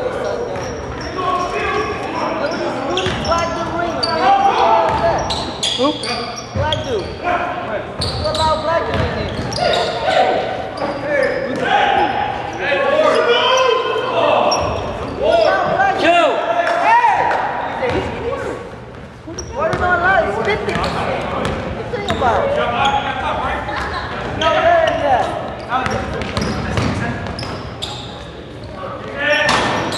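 Sneakers squeak on a wooden court in a large echoing gym.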